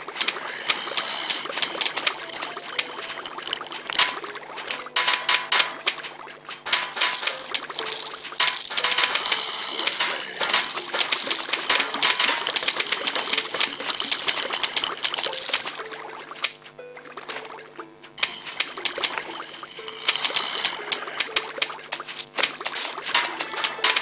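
Peas splat against zombies in quick succession.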